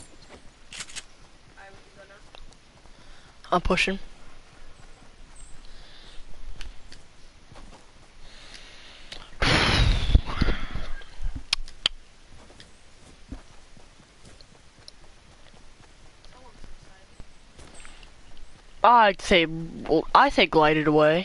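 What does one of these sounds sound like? Footsteps patter quickly over grass and ground.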